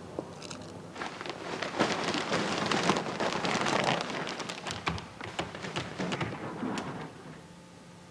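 Plastic sheeting rustles and crinkles.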